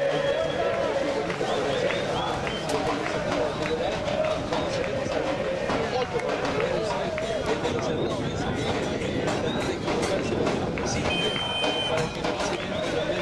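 A crowd of men and women chatters and calls out nearby, outdoors.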